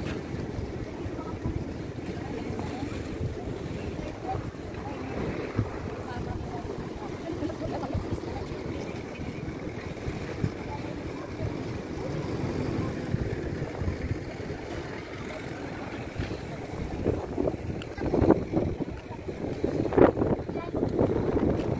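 Wind blows outdoors near open water.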